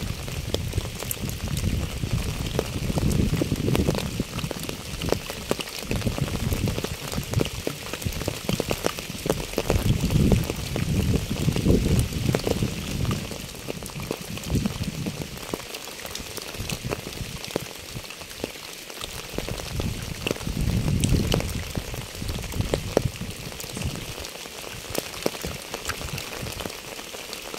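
Light rain patters steadily on a wet path and puddle.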